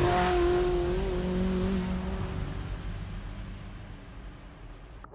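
Tyres hum on a paved road.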